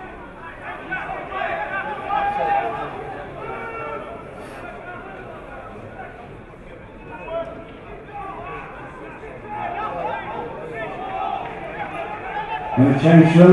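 Spectators chatter and call out nearby, outdoors.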